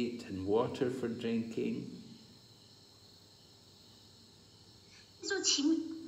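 An older man speaks close to a phone microphone, pausing between phrases.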